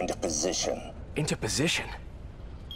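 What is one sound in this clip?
A man speaks in a low voice.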